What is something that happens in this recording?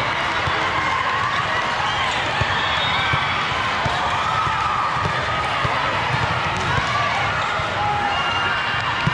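Many voices of players and spectators chatter and call out in a large echoing hall.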